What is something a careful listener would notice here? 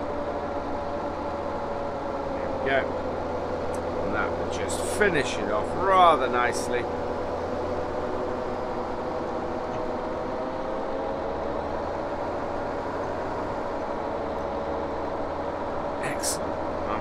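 A tractor engine hums steadily from inside the cab.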